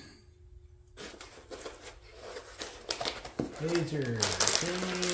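Stiff foam packing squeaks and rustles as it is handled.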